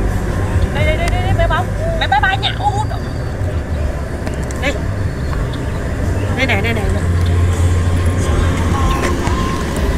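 A young woman talks warmly and close by.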